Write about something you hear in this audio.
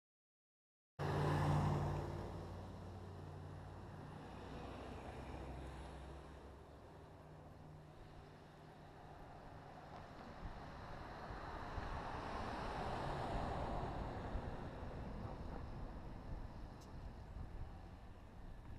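Wheels roll on the road, rumbling steadily.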